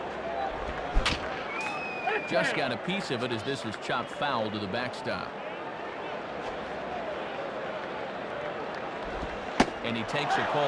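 A baseball smacks into a glove.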